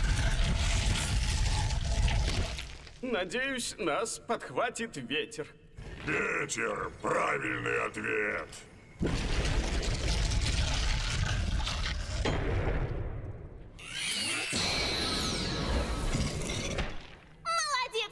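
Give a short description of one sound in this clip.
A young female voice speaks with animation.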